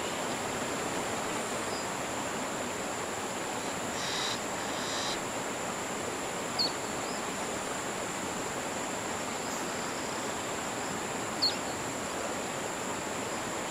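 Calm water laps softly outdoors.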